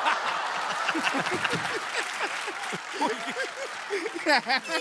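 A man laughs heartily through a microphone.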